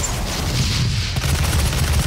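A heavy gun fires rapid shots.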